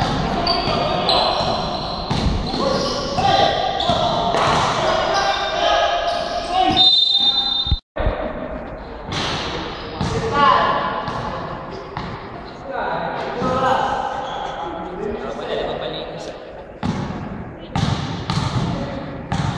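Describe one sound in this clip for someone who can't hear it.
Men shout and call out in a large echoing hall.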